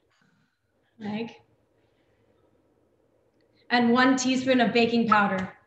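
A young woman speaks with animation through an online call microphone.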